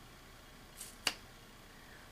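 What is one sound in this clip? Small scissors snip once with a sharp click.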